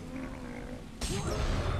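A chest bursts open with a bright magical shimmer.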